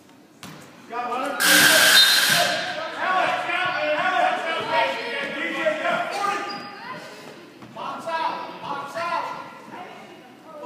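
A crowd of spectators cheers and calls out loudly in a large echoing hall.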